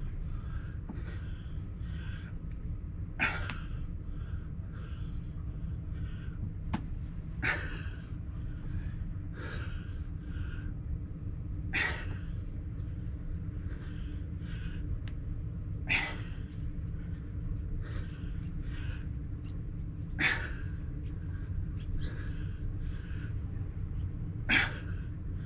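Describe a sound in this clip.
A man breathes heavily in steady rhythm, close by.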